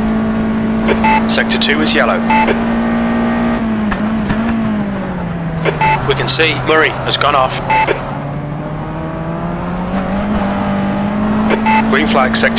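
Tyres squeal as a race car corners.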